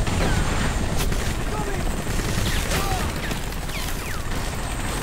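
Gunshots crack now and then.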